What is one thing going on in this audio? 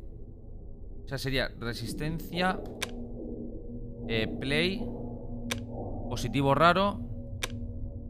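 Keypad buttons beep as they are pressed.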